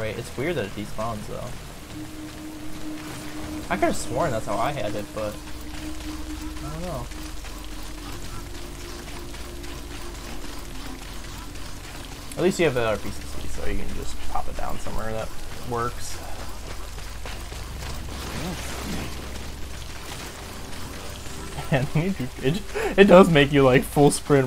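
Two young men talk with animation into microphones, close by.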